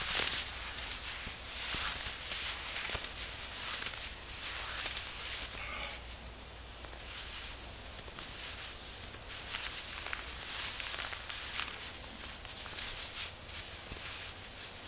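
Hands rub and rustle against a cotton shirt.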